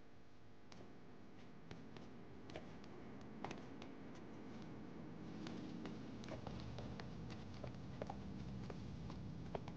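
A fire crackles and pops nearby.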